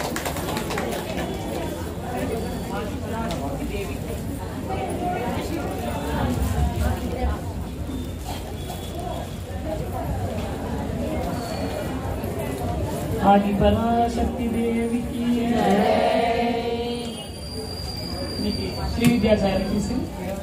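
A group of women chatter nearby.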